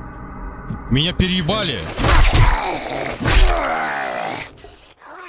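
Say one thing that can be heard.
A zombie growls and snarls up close.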